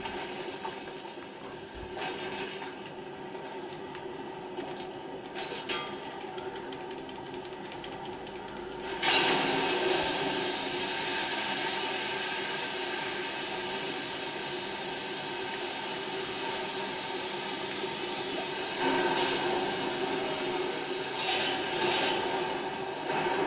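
Video game sounds and music play from a television.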